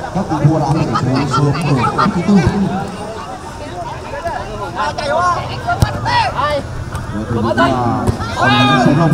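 Spectators at the sideline talk and shout nearby.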